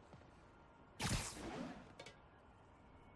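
A short whooshing burst rushes past.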